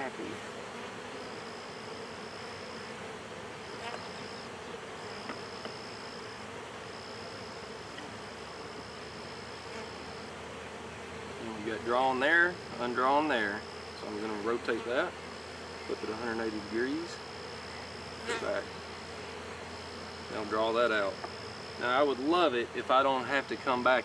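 Bees buzz steadily around an open hive.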